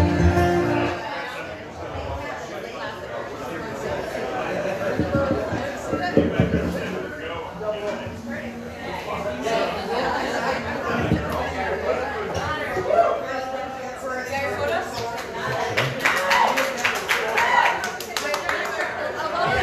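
A man with a deep voice sings into a microphone and is heard through a loudspeaker.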